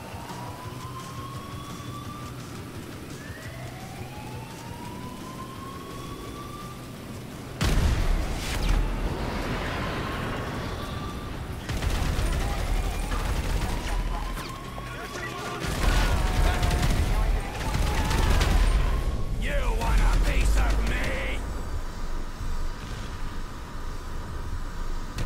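Running footsteps slap on wet pavement.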